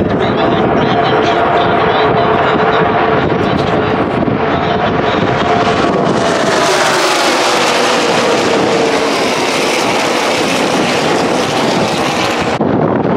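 Race car engines roar loudly as cars speed past on a track.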